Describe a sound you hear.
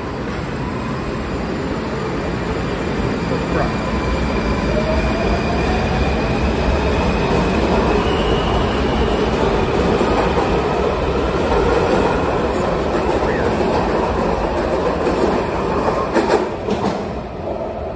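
A train's wheels clatter over rail joints.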